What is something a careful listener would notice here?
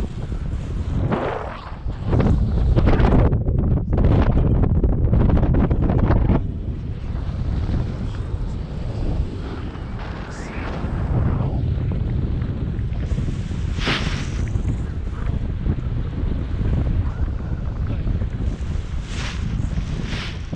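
A woman calls out excitedly over the wind.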